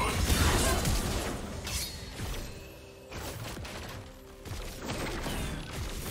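Video game spell effects and hits crackle and boom in quick bursts.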